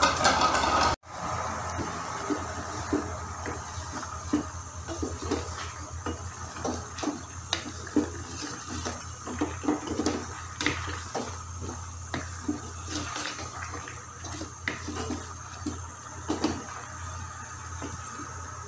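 Food sizzles and simmers in a pan.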